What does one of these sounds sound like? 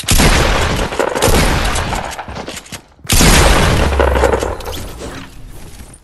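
Loud shotgun blasts boom in quick bursts.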